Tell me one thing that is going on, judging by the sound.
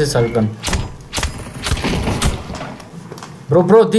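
An axe smashes open a metal case.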